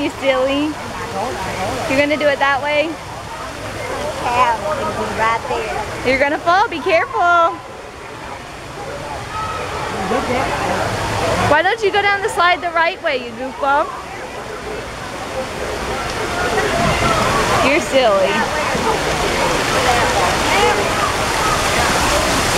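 A young boy talks and babbles nearby.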